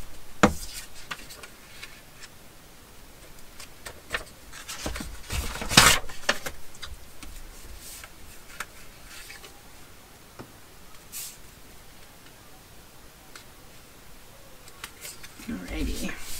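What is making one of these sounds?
Card paper rustles and slides as hands handle it.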